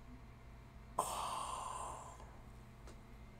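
A young man sighs heavily.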